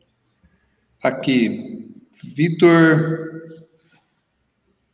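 A man with a headset speaks calmly over an online call.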